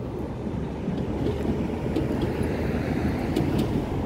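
A car drives past on a road.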